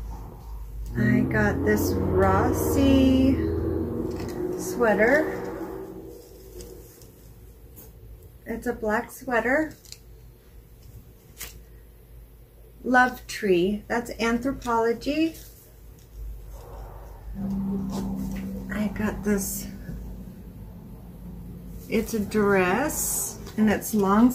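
A woman talks calmly and closely to the listener.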